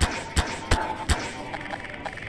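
A toy-like gun zaps sharply several times.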